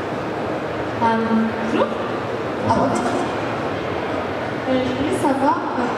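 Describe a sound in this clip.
A young man speaks calmly into a microphone over loudspeakers.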